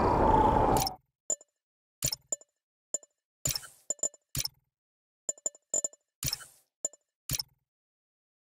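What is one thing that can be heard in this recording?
A game menu clicks as options are selected.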